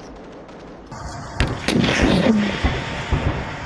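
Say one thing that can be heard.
A vehicle's cannon fires loud rapid shots close by.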